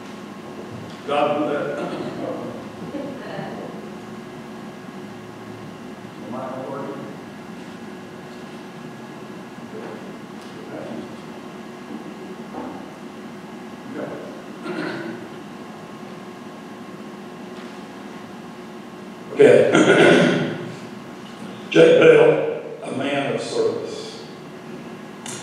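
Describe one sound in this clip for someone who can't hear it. A man speaks slowly and calmly through a microphone in a large echoing hall.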